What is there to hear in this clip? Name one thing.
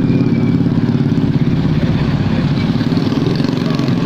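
A truck engine rumbles loudly nearby as it drives past.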